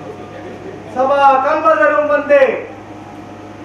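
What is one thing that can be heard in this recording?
A man sings loudly through a microphone and loudspeakers.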